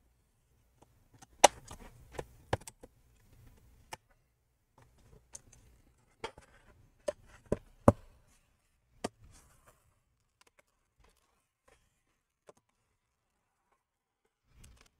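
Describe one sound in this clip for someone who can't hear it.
Hands knock and handle a metal laptop case on a table.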